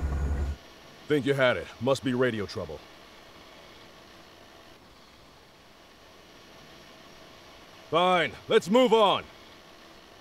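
A man speaks with irritation.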